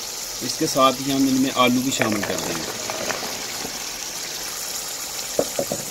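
Chopped potatoes tumble into a pot.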